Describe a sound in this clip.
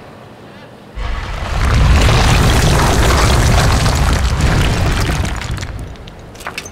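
A heavy stone mechanism grinds and rumbles loudly as it turns.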